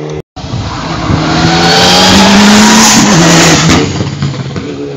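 A racing car roars past at full throttle.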